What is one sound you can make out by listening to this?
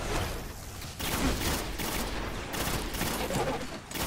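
A heavy gun fires in loud, rapid bursts.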